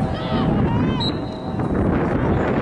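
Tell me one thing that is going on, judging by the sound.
A referee's whistle blows a short, shrill blast outdoors.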